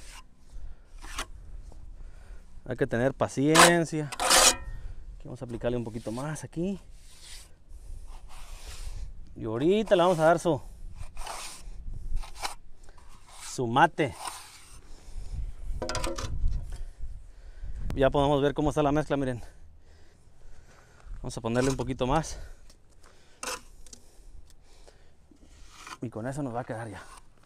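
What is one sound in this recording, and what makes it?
A trowel scrapes and taps on concrete.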